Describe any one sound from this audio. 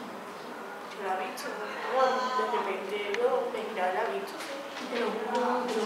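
A teenage girl talks quietly with a classmate.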